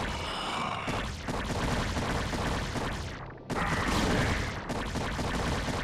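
An electric storm crackles and buzzes loudly.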